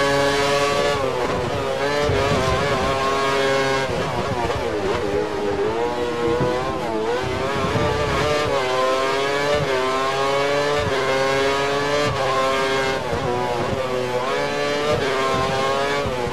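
A racing car engine whines down as the car brakes into corners.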